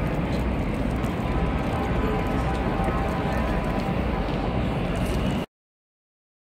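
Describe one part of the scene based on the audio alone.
A busy city street hums with crowd noise.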